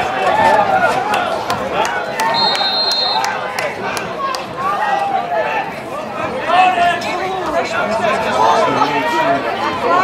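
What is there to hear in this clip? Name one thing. Lacrosse sticks clack against each other.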